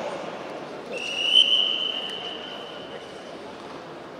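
A referee blows a shrill whistle in a large echoing hall.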